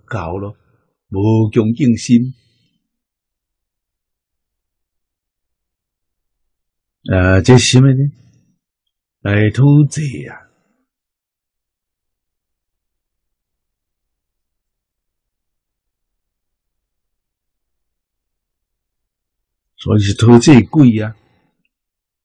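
An elderly man speaks calmly into a microphone, in short phrases with long pauses.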